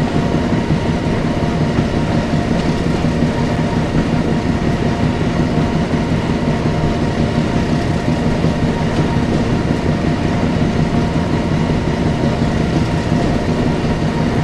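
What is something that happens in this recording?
Train wheels roll slowly over the rails.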